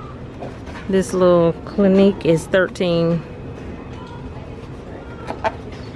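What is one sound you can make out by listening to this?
A small cardboard box scrapes and taps as a hand lifts it from a shelf.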